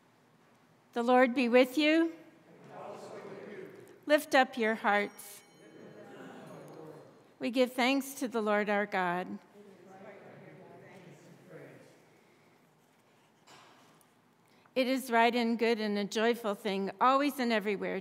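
An older woman chants in a clear singing voice through a microphone, in phrases with pauses between them.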